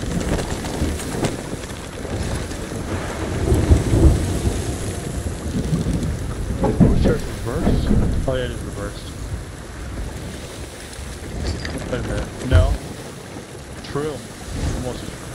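Rain pours down steadily.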